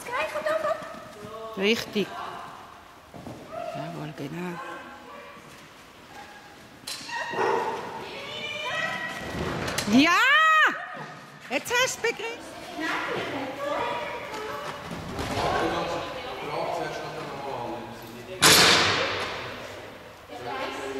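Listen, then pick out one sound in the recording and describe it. A woman calls out commands to a dog in a large echoing hall.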